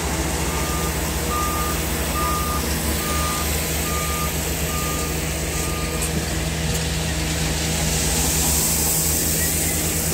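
A digger bucket scrapes and pours loose gravel.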